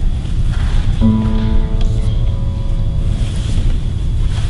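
A classical guitar plays plucked notes.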